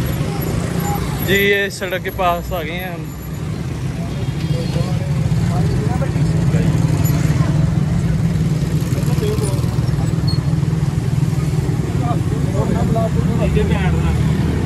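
Auto-rickshaw engines rumble steadily nearby.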